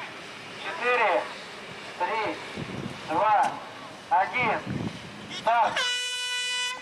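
People shout outdoors.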